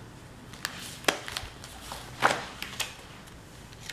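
A planner's stiff pages flip over with a soft thump.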